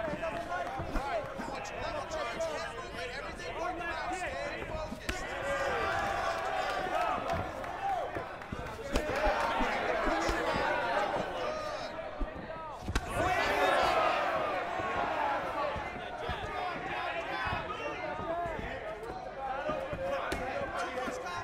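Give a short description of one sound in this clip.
Punches and kicks thud against a body.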